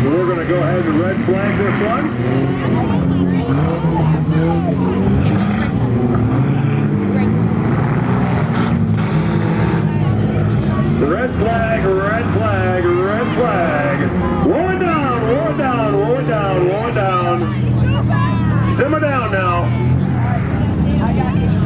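Race car engines roar and rev loudly.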